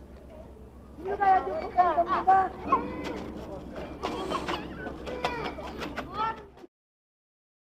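Children's voices carry from a distance outdoors.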